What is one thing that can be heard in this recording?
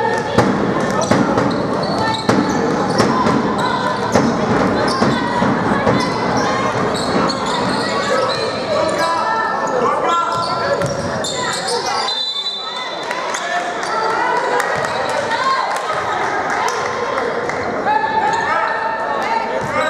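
Young women players shout and call out across a court.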